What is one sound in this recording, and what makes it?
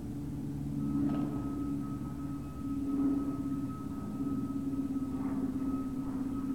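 Dogs bark from kennels a short way off.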